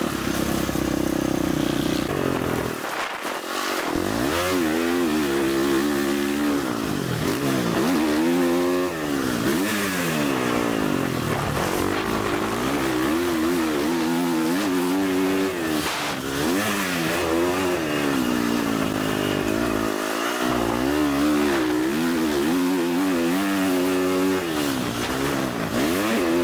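A dirt bike engine revs loudly, rising and falling in pitch again and again.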